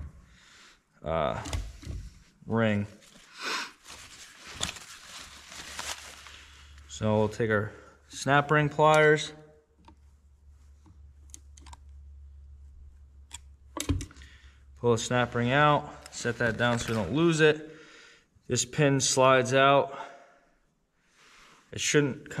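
Metal parts clink and scrape together.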